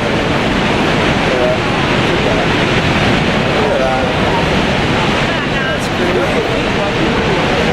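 A waterfall roars loudly and steadily close by.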